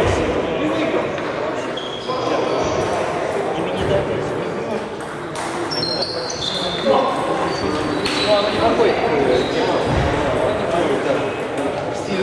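Two men talk with each other up close.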